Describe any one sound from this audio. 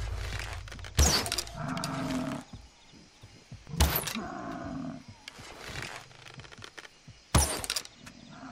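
A bowstring snaps as an arrow is loosed, several times.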